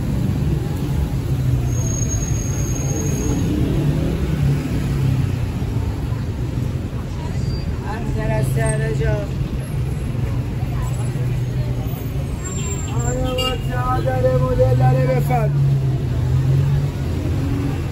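Traffic hums steadily along a busy street outdoors.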